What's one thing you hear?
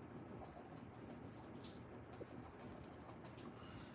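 A paintbrush dabs and scrubs softly against canvas.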